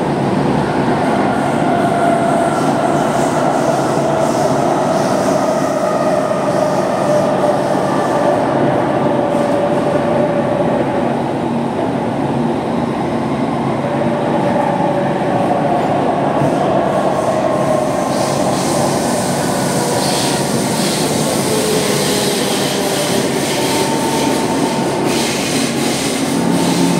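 A train's motor hums with a slowly gliding pitch.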